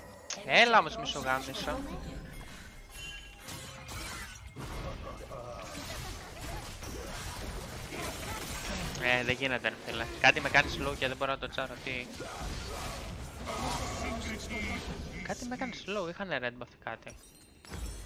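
A young man talks with animation into a microphone, heard close.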